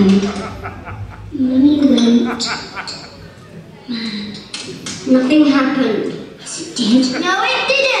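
A young woman sings loudly and with feeling, close by.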